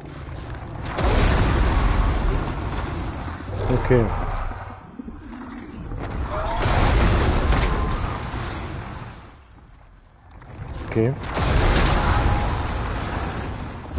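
Roaring flames from a dragon's fire breath burst and rumble loudly.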